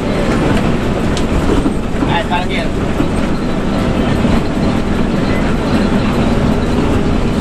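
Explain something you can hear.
Tyres roll over the road with a steady roar.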